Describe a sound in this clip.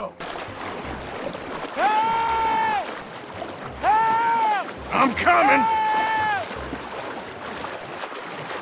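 Water splashes and sloshes as a man wades.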